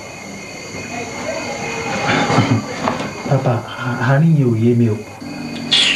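A young man answers quietly, close by.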